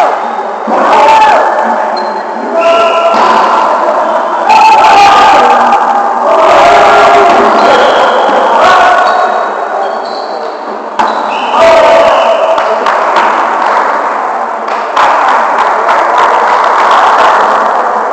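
A volleyball is struck with dull slaps.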